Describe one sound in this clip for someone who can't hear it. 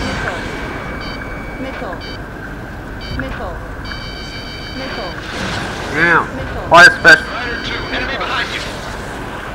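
A cockpit warning tone beeps in quick bursts.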